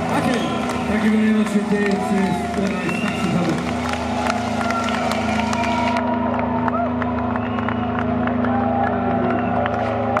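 A rock band plays loudly in a large echoing hall.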